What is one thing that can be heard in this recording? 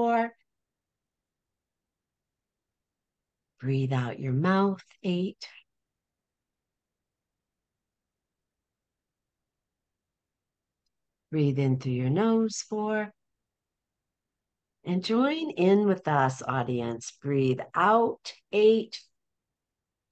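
An older woman speaks slowly and calmly over an online call, with long pauses.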